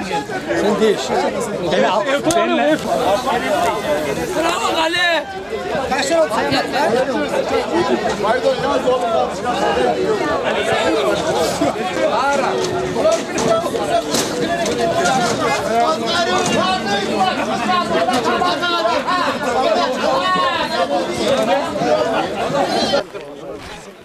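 A crowd of men chants and cheers loudly outdoors.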